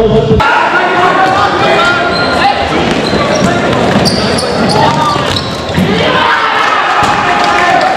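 A large crowd cheers and shouts in an echoing sports hall.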